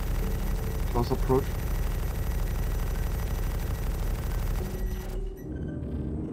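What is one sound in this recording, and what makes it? A spacecraft engine roars with a steady low rumble.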